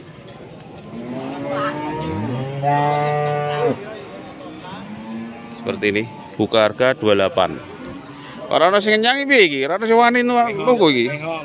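Men talk loudly nearby, outdoors.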